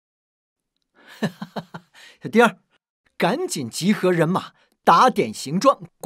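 A man speaks commandingly, close by.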